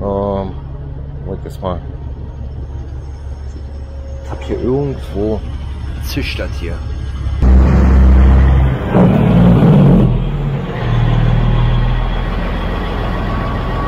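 A truck's diesel engine idles with a steady low rumble.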